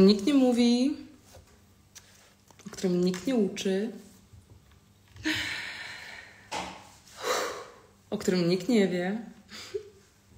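A young woman talks animatedly, close to the microphone.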